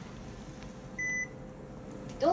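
A card reader gives a short electronic beep.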